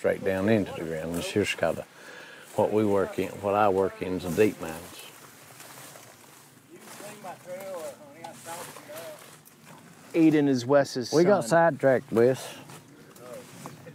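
A middle-aged man talks calmly outdoors.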